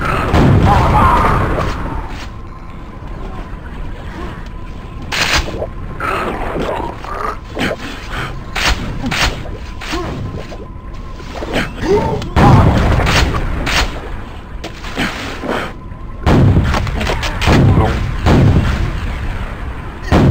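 A gun fires sharp shots in quick bursts.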